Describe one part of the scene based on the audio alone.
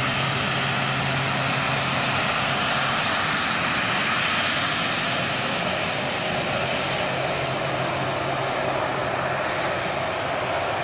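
A four-engine turbofan jet roars as it taxis past.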